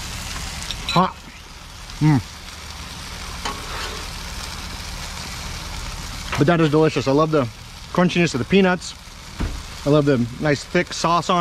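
Food sizzles steadily on a hot griddle.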